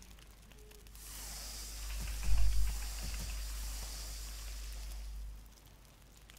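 A fire flares up with a loud, steady hissing roar.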